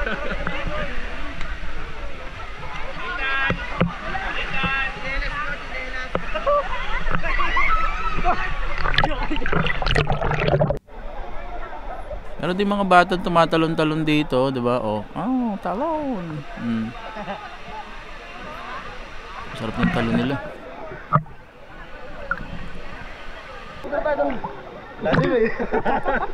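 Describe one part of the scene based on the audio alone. Water splashes and laps close by.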